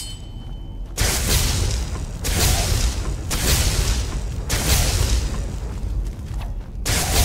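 Electricity crackles and buzzes in loud bursts.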